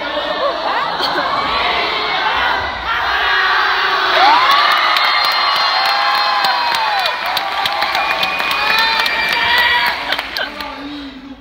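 A crowd of young people cheers and shrieks in a large echoing hall.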